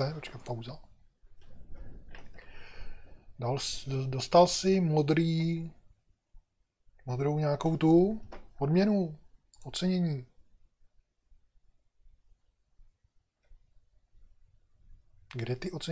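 An older man talks calmly and closely into a microphone, in short bursts with pauses.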